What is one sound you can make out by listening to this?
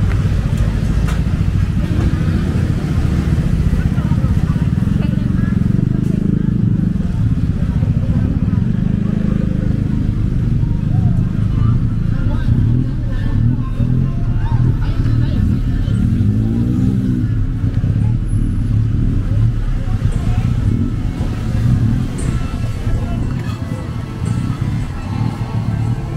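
Passers-by chatter in the background of a busy street.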